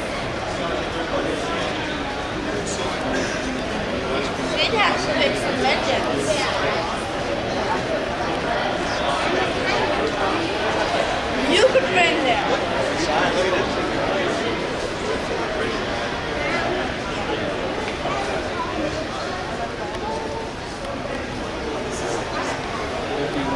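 Many people murmur and chat in the background of a large echoing hall.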